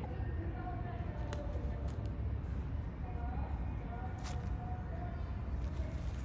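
A crow pecks and rustles at a plastic bag.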